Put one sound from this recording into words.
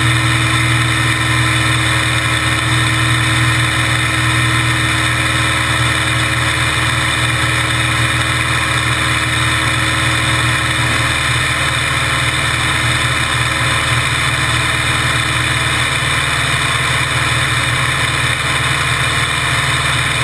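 An engine idles close by with a steady low rumble.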